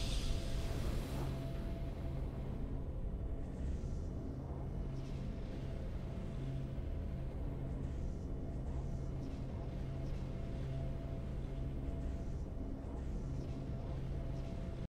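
Calm, triumphant music plays steadily.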